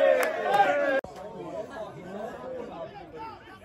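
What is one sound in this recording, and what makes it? A crowd murmurs outdoors at a distance.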